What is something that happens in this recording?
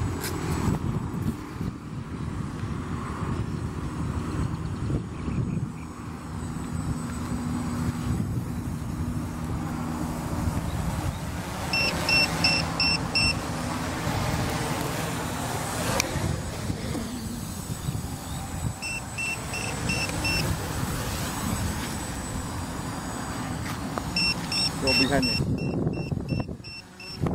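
A small drone buzzes overhead at a distance.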